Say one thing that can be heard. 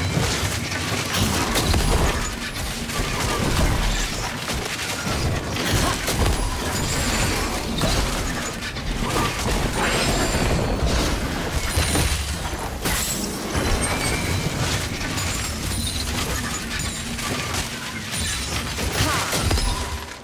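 Weapon hits clash and thud in quick bursts.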